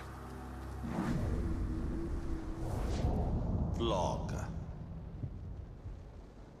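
A monster growls deeply and menacingly.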